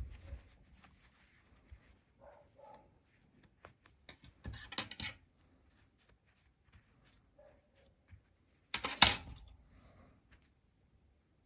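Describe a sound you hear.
Hands rustle softly as yarn is pulled through knitted stitches.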